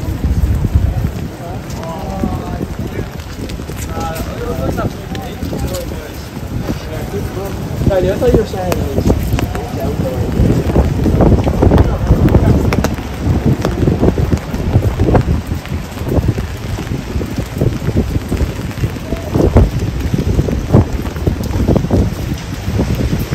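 Wind buffets loudly outdoors with a low rumble.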